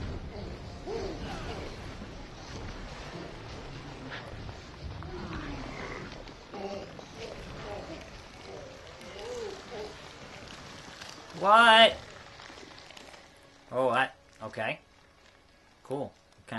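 A young man talks and exclaims loudly close by.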